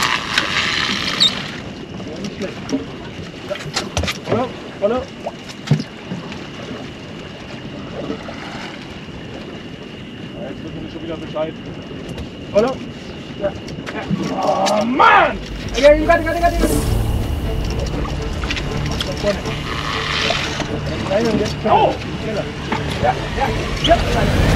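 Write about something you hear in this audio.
Men talk to each other on a boat.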